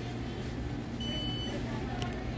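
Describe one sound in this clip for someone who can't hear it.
A card terminal beeps once.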